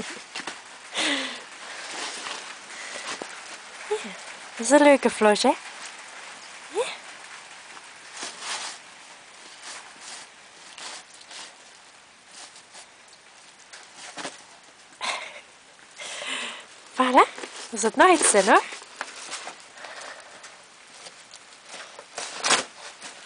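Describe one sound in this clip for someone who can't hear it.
A dog tears and rustles paper wrapping close by.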